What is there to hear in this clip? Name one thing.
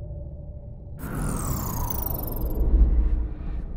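Machinery powers down with a falling whine.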